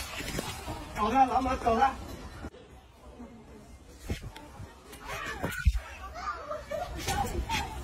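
A monkey screeches with short, harsh calls close by.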